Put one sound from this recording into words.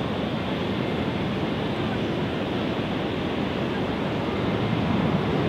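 A jet engine roars steadily as an airliner taxis nearby.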